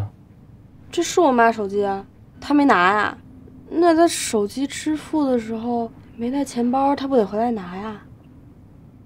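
A young girl speaks anxiously, close by.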